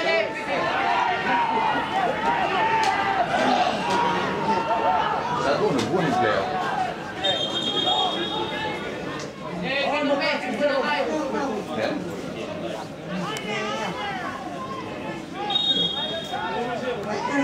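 A crowd of spectators chants and shouts in a stadium.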